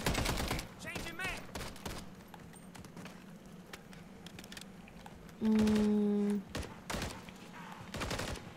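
Rapid gunfire cracks close by.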